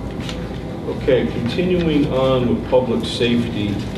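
A man speaks calmly at a distance in a room.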